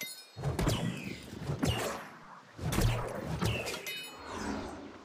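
Sword blows strike with sharp, heavy impacts.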